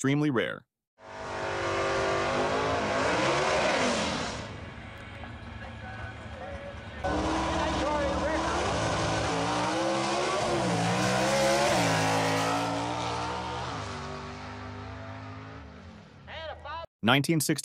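A drag racing car engine roars loudly, revving up and down as the car launches and speeds away.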